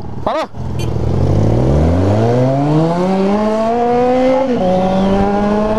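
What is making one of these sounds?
A motorcycle engine revs up as the bike accelerates, then drops as it shifts gear.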